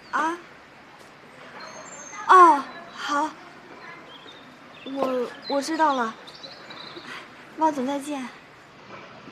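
A young woman speaks into a phone in short, polite replies.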